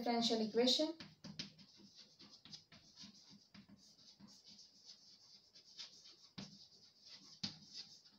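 Chalk taps and scratches on a board as someone writes.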